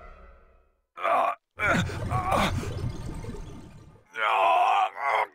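A heavy blow lands with a thud.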